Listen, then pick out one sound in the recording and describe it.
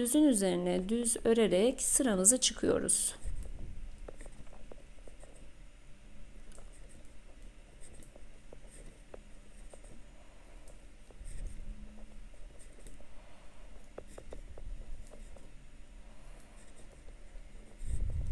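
Knitting needles tick and click softly.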